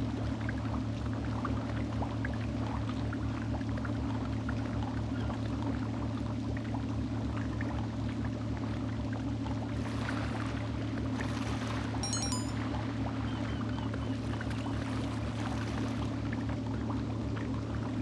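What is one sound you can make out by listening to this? Water bubbles and churns in a hot tub.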